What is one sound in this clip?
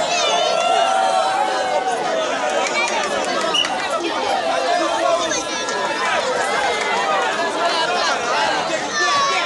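A large outdoor crowd shouts and cheers loudly.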